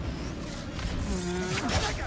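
A magic shield hums and crackles around a figure.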